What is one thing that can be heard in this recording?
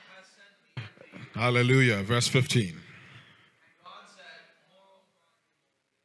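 A man speaks with emphasis into a microphone, heard through loudspeakers in a large hall.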